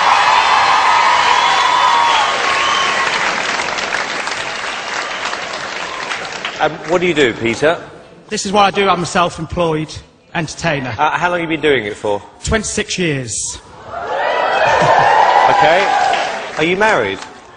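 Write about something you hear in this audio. A large audience cheers and applauds in an echoing hall.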